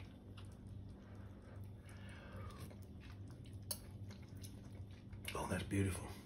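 Food sizzles and crackles softly in a pan.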